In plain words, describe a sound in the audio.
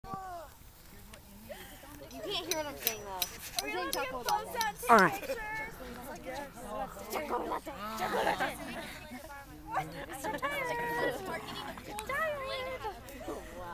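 Teenage boys talk and call out to each other nearby, outdoors.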